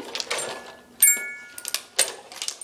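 A toy plays short electronic tones.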